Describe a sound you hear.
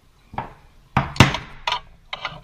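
A metal mold clacks as its halves are pulled apart.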